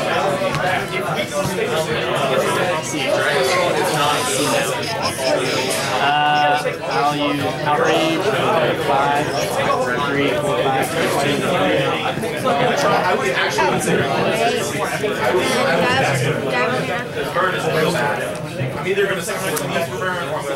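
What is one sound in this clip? Playing cards slap and slide onto a table.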